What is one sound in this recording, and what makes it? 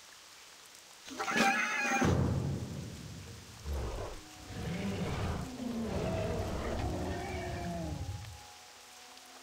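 A magical spell whooshes and shimmers.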